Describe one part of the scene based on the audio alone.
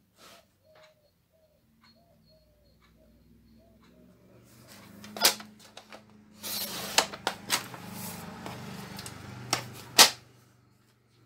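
A paper trimmer blade slides and cuts through card with clicks.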